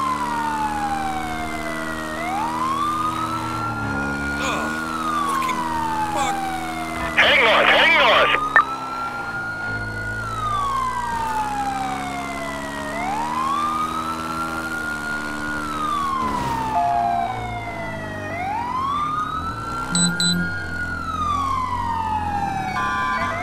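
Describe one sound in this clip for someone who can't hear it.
A motorcycle engine revs up and down as it shifts through gears.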